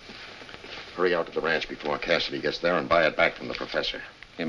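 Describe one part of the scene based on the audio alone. An older man talks with animation up close.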